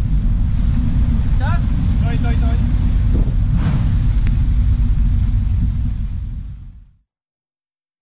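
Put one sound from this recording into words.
Waves rush and splash against a sailboat's hull.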